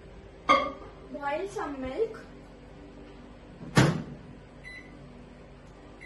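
A microwave door clicks shut.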